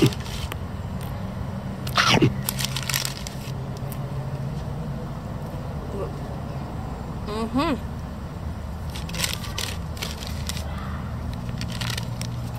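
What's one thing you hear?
A young woman crunches crisps close by.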